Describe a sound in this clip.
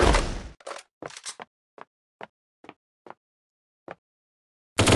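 Single gunshots crack now and then.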